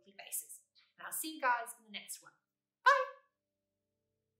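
A young woman speaks cheerfully and close up.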